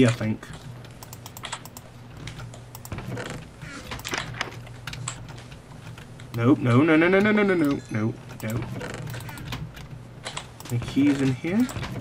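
A chest creaks open.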